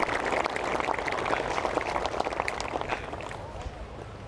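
A golf putter taps a ball softly.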